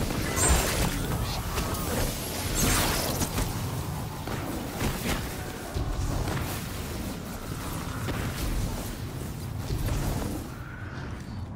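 Rapid gunfire crackles and booms.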